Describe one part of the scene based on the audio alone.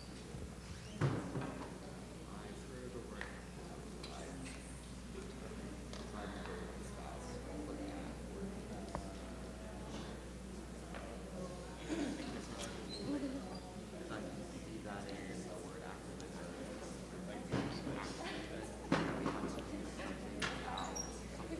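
An audience murmurs and chats quietly.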